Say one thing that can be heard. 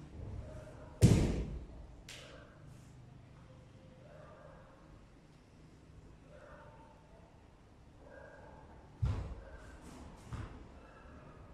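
A martial arts uniform snaps sharply with quick strikes.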